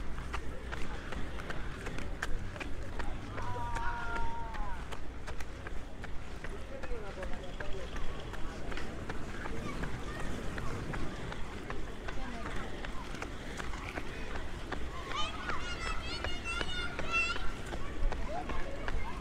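Roller skate wheels roll and clatter on pavement.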